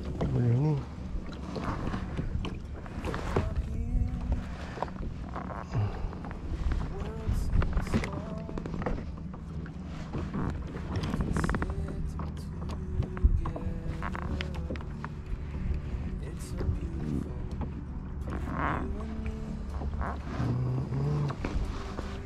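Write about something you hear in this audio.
Water laps against a kayak's hull.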